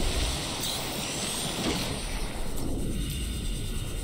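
A small vehicle splashes down into water.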